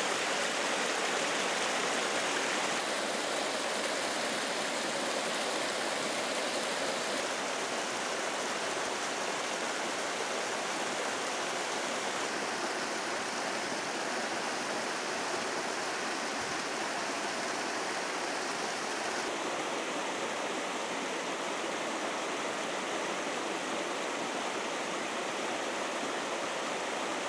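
A stream rushes and splashes steadily close by.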